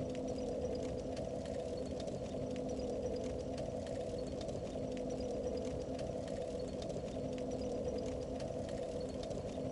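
A low, eerie hum drones steadily from a shimmering wall of fog.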